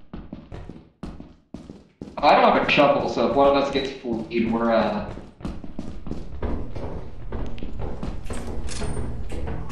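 Footsteps thud along a hard floor.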